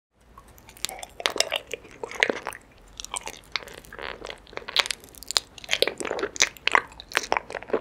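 A young woman bites into honeycomb with close, crisp crunching.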